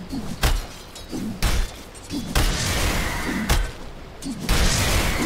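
Heavy blows and blasts land again and again in a fight.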